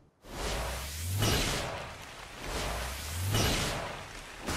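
Large wings flap with deep, whooshing beats.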